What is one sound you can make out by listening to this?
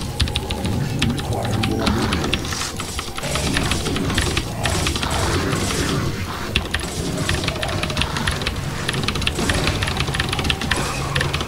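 Mouse buttons and keys click rapidly close by.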